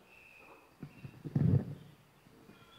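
A microphone thumps as a woman handles it.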